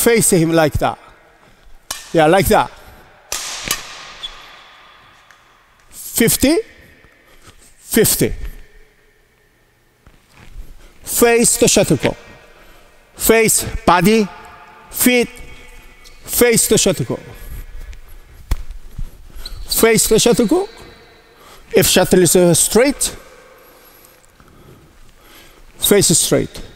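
A middle-aged man speaks with animation in an echoing hall.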